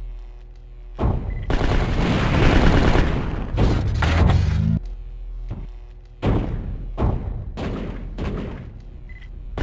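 Heavy guns fire in loud rapid bursts.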